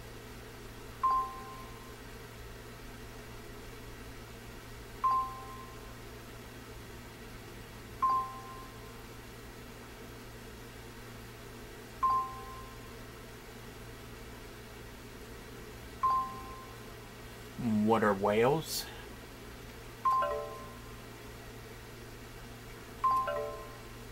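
Short electronic chimes ring out from a game every few seconds.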